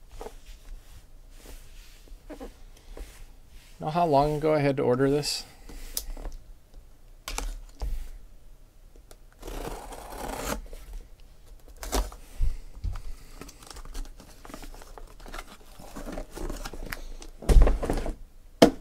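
Hands shift and turn a cardboard box, which rustles and thumps.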